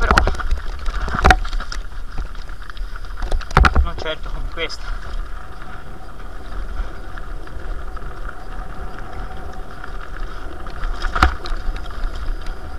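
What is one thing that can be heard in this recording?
Bicycle tyres roll and crunch over a rough, stony trail.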